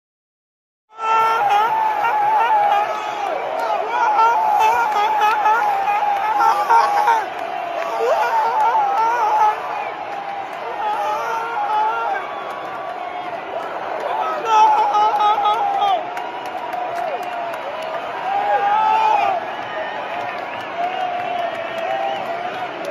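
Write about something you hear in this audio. A crowd of men sings and chants loudly in a large echoing stadium.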